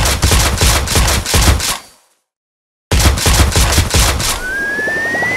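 Rapid game gunshots pop in quick bursts.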